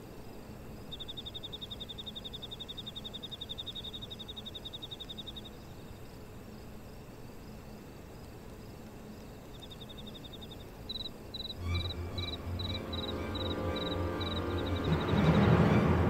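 Rapid soft electronic blips tick in a steady run.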